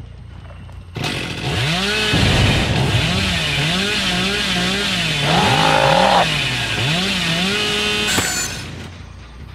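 A chainsaw revs loudly.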